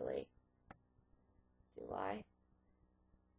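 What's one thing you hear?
A young woman speaks briefly, close to the microphone.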